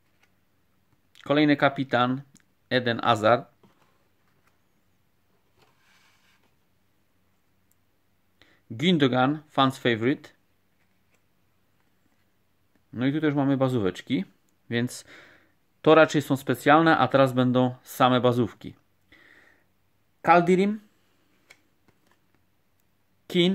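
Trading cards rustle and slide as hands sort through them.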